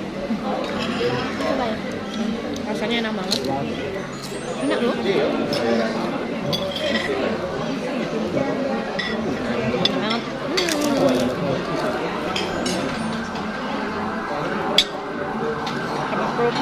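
A young woman crunches crisp food while chewing.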